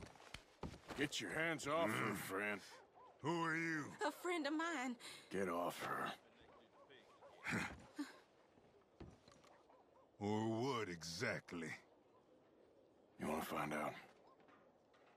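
A man speaks firmly and calmly, close by.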